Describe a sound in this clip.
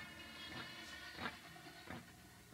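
A violin plays a sustained melody.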